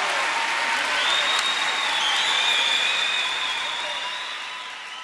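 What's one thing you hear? Audience members cheer and whistle.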